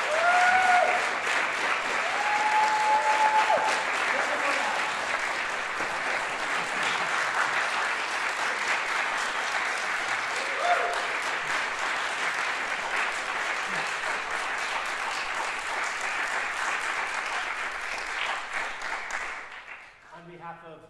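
An audience applauds and cheers loudly in a large hall.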